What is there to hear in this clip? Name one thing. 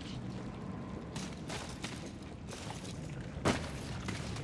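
Footsteps crunch quickly over dry dirt.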